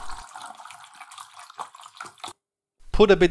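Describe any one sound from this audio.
Liquid pours and gurgles through a funnel into a bottle.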